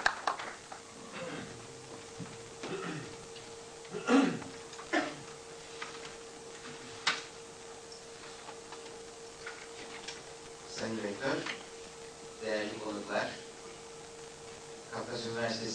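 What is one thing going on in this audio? A middle-aged man speaks calmly over a microphone, with pauses.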